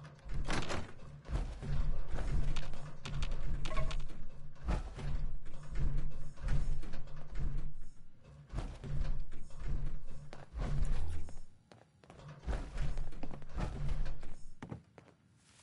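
Heavy armoured footsteps thud steadily across a floor.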